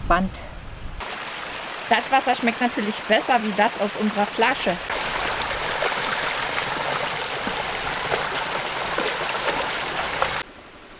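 A shallow stream trickles and splashes over rocks.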